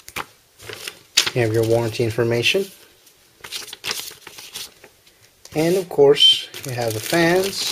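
Plastic wrapping crinkles under handling.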